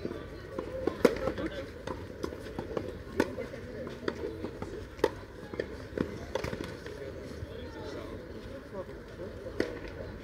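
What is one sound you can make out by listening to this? Tennis rackets strike a ball with sharp pops.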